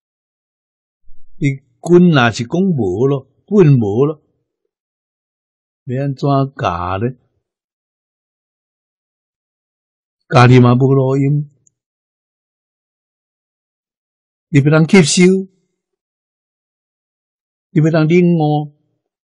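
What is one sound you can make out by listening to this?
An elderly man speaks calmly into a microphone in short phrases with long pauses.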